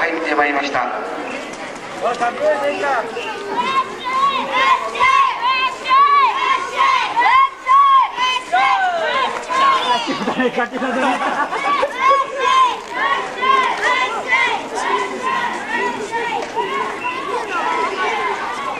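A crowd of people chatters outdoors.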